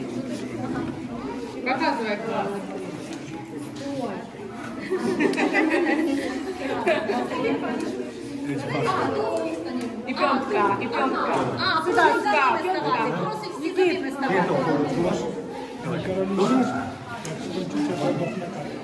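Children chatter and laugh nearby.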